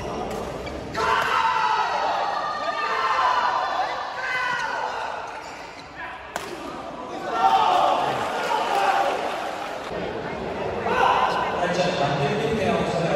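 A crowd of spectators chatters and cheers.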